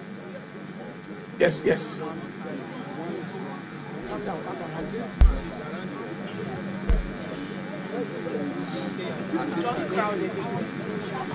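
A large crowd talks and calls out outdoors.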